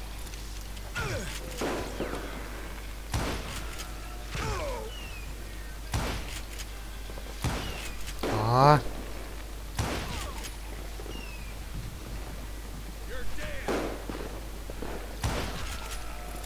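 Gunshots ring out one after another, with a short echo after each.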